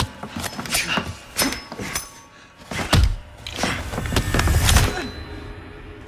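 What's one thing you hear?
Heavy blows thud during a close fight.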